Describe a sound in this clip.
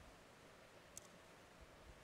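A metal cup clinks softly.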